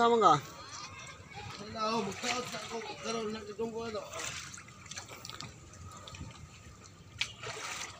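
A man wades and splashes through shallow water.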